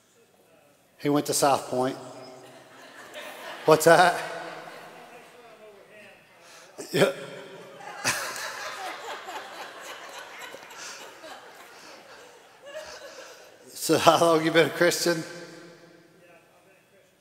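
A man speaks to an audience through a microphone, heard in a large echoing hall.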